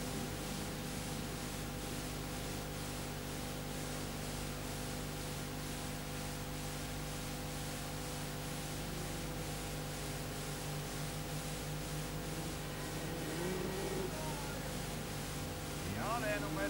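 Racing car engines roar and rev in the distance.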